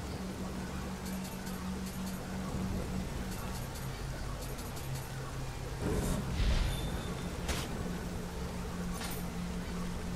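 Soft menu clicks and chimes sound now and then.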